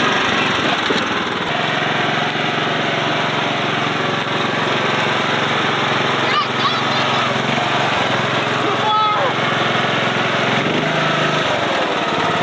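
A small tractor engine runs and chugs.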